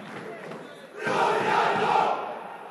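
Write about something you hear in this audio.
Young men shout from a distance across an outdoor football pitch.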